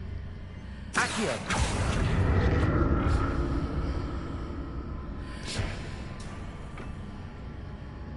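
A magic spell bursts with a loud rushing whoosh.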